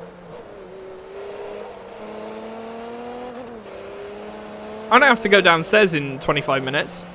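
A racing car engine drones steadily and rises in pitch as the car speeds up.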